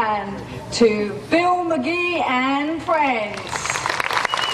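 A woman speaks with animation into a microphone in a large echoing hall.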